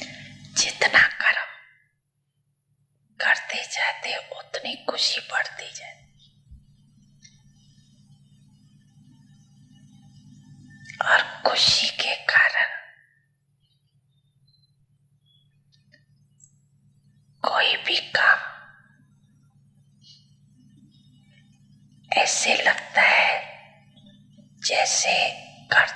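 An elderly man speaks calmly into a microphone in bursts, with pauses between them.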